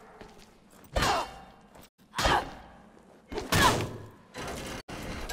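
Heavy blows thud and crack against a wooden board.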